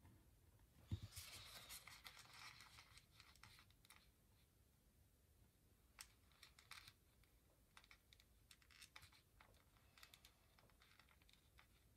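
A paper sticker sheet rustles as it is handled and peeled.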